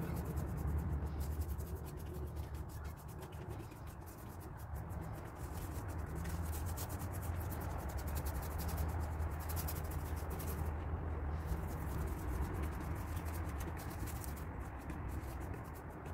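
A paintbrush swishes softly across a leather cushion.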